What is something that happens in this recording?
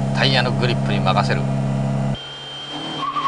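A car engine drones loudly from inside the car.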